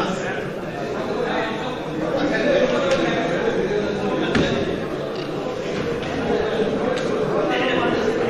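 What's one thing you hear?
A crowd of men talks and murmurs all at once in a large room.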